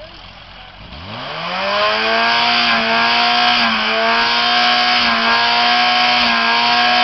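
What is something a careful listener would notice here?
A car's sound system blasts a very loud, steady droning tone that rises in pitch and then holds.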